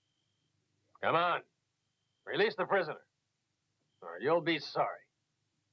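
A man speaks in a low, tense voice, in short bursts with pauses between.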